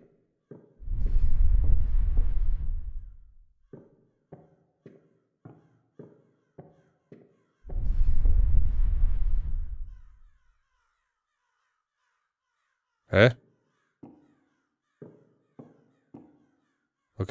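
Footsteps thud on wooden boards at a steady pace.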